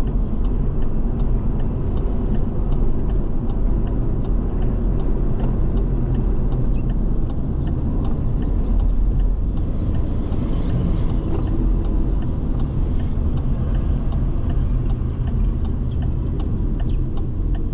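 A car engine hums steadily from inside the car as it drives.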